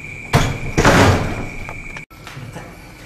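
A door rattles and bangs open.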